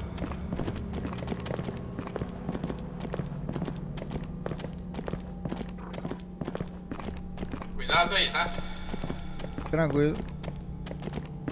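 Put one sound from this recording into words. Heavy footsteps thud quickly and steadily.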